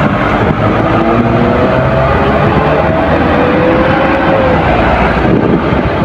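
A heavily loaded diesel truck passes close by, its engine straining uphill.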